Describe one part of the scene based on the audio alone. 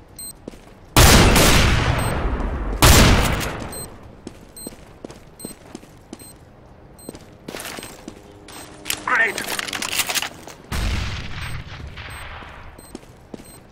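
Rifle shots fire loudly, with echoing tails.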